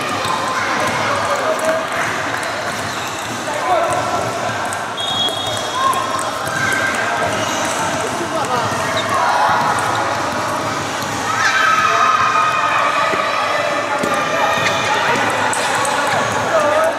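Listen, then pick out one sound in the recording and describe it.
Several men's voices chatter nearby in a large echoing hall.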